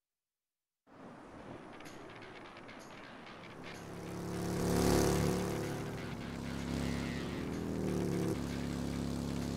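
A motorcycle engine rumbles and revs as it rides along.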